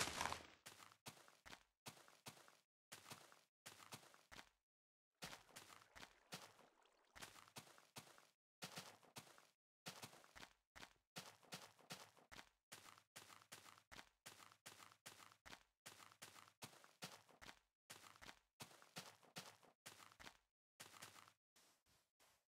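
Footsteps crunch steadily on grass.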